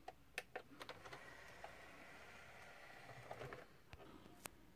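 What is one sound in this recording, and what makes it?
A disc player's tray slides shut with a soft whir.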